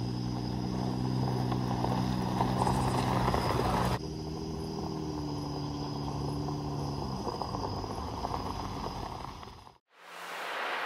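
An off-road truck engine idles and rumbles loudly outdoors.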